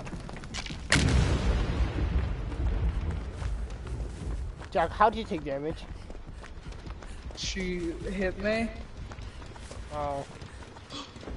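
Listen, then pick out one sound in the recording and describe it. Footsteps run quickly over grass and dry leaves.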